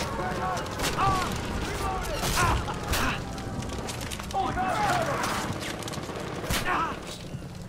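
Gunshots crack in sharp bursts.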